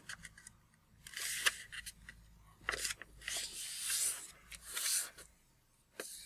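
Stiff paper rustles and creases as it is folded by hand.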